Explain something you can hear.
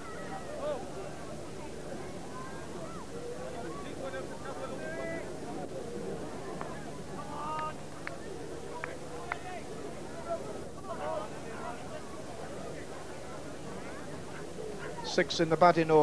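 A crowd of spectators chatters quietly in the distance.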